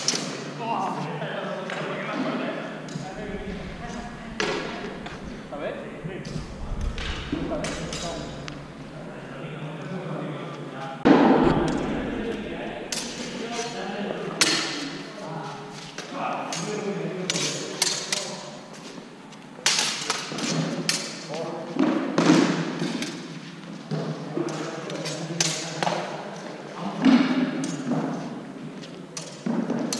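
Steel longswords clash and ring against each other in sparring.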